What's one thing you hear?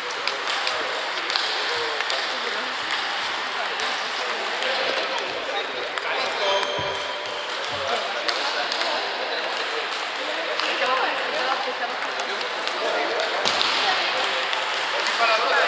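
A table tennis ball clicks back and forth across a table and off paddles.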